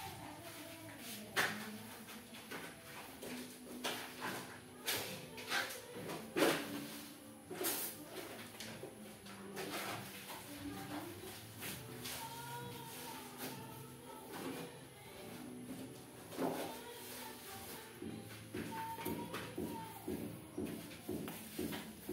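A broom sweeps across a hard floor with short brushing strokes.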